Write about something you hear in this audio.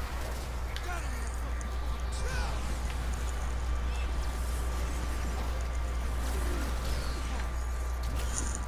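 A large beast growls and roars.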